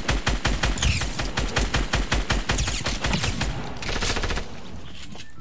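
An automatic rifle fires in rapid bursts in a video game.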